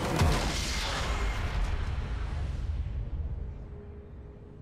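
A loud magical blast booms and slowly fades away.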